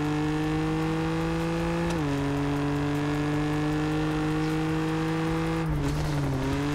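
A sports car engine roars steadily at high revs, dropping in pitch with each gear change.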